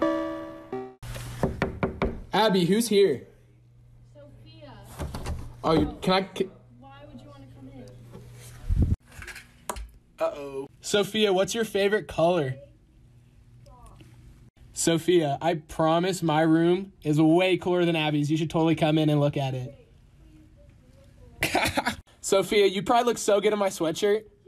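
A young man talks with animation close to a phone microphone.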